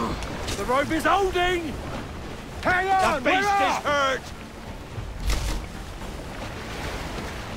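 Sea waves wash and lap steadily around a small boat.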